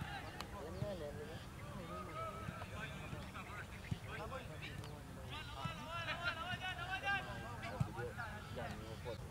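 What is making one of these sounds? Young men call out to each other in the distance.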